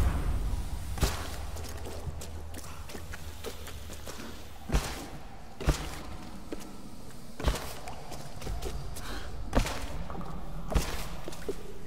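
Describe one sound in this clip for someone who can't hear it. Heavy thuds land at intervals.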